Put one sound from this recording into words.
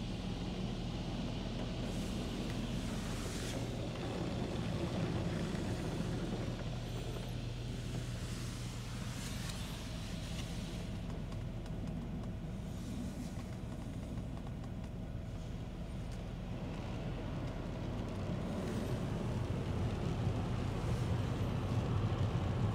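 Machinery hums steadily, heard from inside a car.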